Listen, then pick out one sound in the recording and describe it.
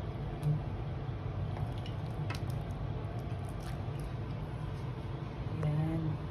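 A metal ladle stirs and clinks in a pot of soup.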